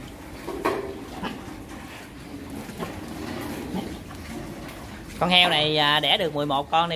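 Piglets squeak and squeal loudly close by.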